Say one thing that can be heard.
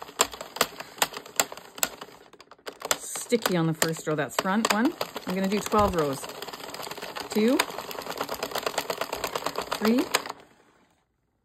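A small hand-cranked machine clicks and clatters in a steady rhythm.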